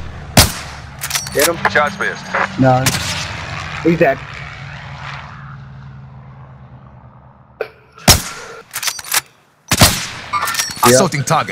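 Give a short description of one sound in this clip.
A bolt action clacks as a rifle is reloaded.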